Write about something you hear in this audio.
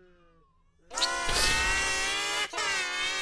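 A man shrieks loudly into a microphone.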